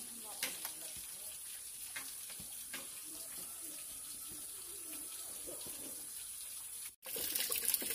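Bamboo shoots thud softly as they drop into a pot of water.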